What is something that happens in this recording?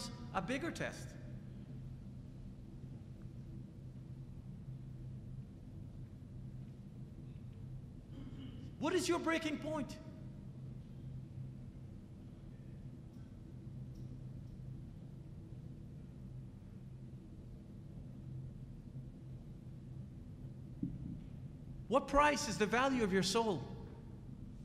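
A middle-aged man speaks into a microphone in short bursts with long pauses.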